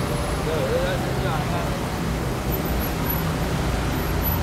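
A minibus engine hums as it pulls past close by.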